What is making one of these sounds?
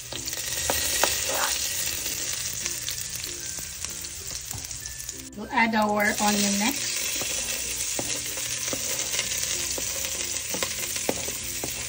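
Garlic sizzles steadily in hot oil.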